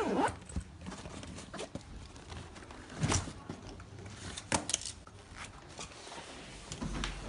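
A bag's fabric rustles.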